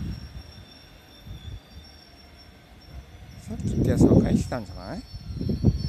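A train rumbles faintly in the distance as it approaches.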